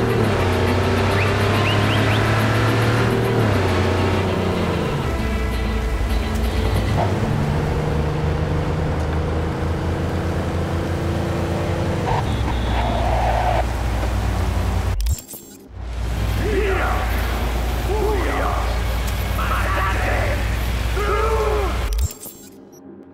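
A car engine roars steadily as a car speeds along.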